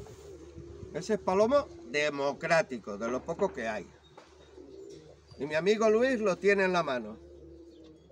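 A man talks nearby with animation.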